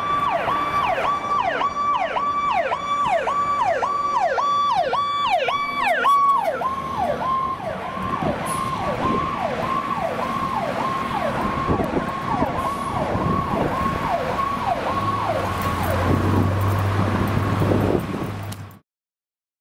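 A fire truck siren wails in fast, repeating up-and-down sweeps as the truck passes.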